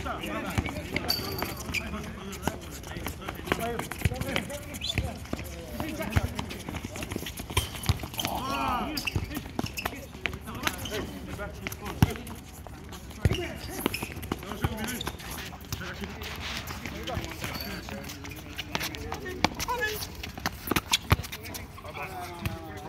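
A ball is kicked with sharp thuds on a hard court.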